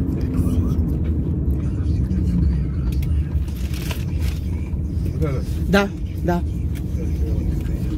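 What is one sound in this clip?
A car's engine and road noise rumble low and steady from inside.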